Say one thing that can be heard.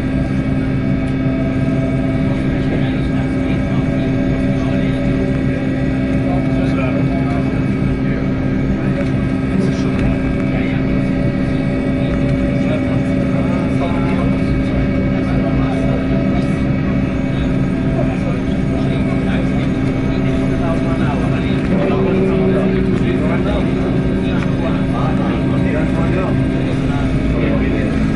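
A man speaks briefly through a headset intercom.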